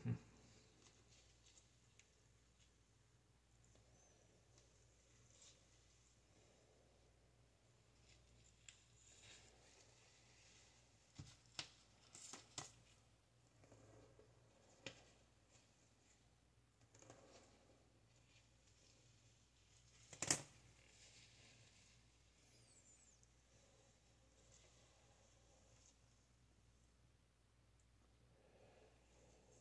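A brush swishes softly through wet hair.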